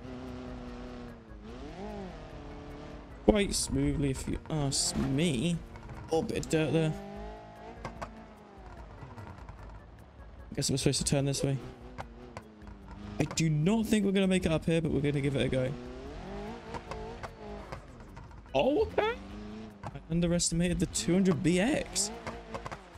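A car engine revs up and down, rising and falling in pitch.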